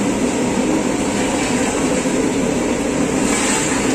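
A metal lid scrapes and clanks as it is lifted off a pot.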